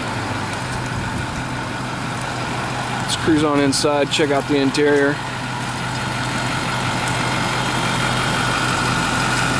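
A bus engine idles with a steady low hum.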